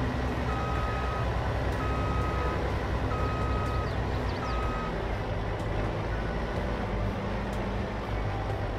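A harvester engine rumbles steadily.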